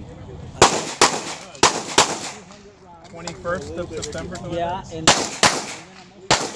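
Gunshots ring out outdoors in quick pairs, sharp and loud.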